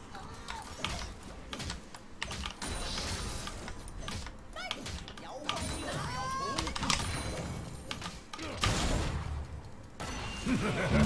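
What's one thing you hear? Video game spells whoosh and clash during a fight.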